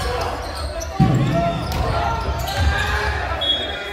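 A basketball thumps on the floor.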